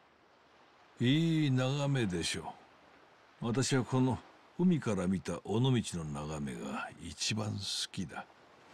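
An elderly man speaks calmly and warmly, close by.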